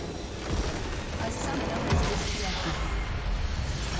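A large structure explodes with a loud boom.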